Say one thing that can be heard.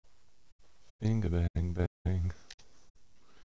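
A man speaks loudly with animation, close by.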